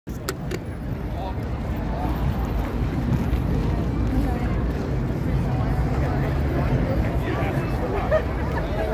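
A crowd of people chatters outdoors, close by.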